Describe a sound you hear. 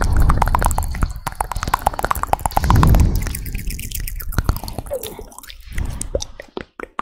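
A woman whispers softly, very close to a microphone.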